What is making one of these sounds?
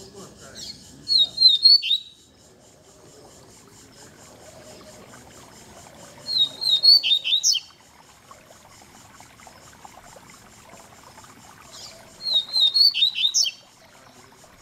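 A caged songbird sings short, loud chirping phrases that come again every few seconds.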